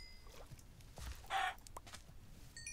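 A chicken clucks.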